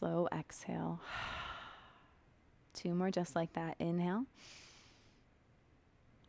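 A young woman breathes out slowly and audibly.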